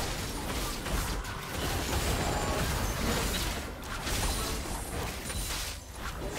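Game spell effects crackle and burst as characters fight.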